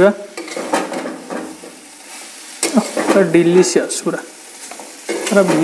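A metal spatula scrapes and clatters against a metal pan.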